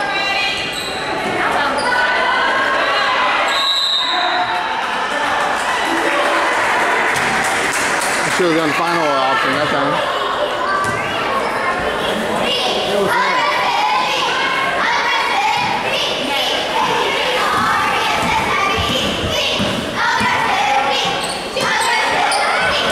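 Young girls and adults shout and call out in a large echoing hall.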